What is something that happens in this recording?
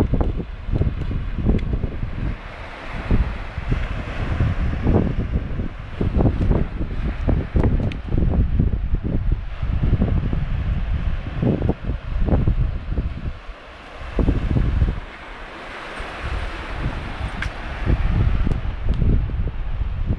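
Wind buffets the microphone in strong gusts.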